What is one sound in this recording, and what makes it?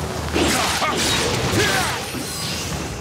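A sword slashes with a loud burst of impact.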